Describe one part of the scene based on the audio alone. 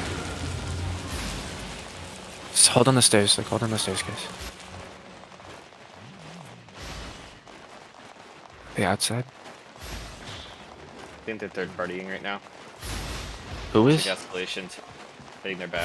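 Magic spells whoosh and crackle in a chaotic fight.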